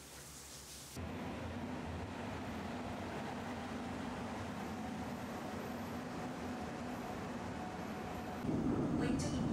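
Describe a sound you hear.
A train hums steadily at a platform.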